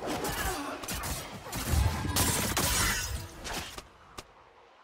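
Game spell effects burst and clash in a fast fight.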